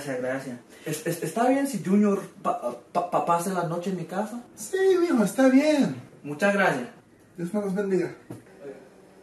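A second man answers with animation, close by.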